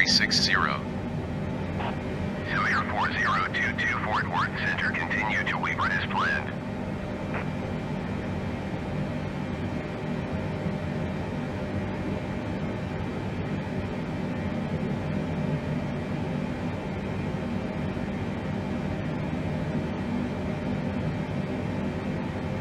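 A steady low engine drone hums.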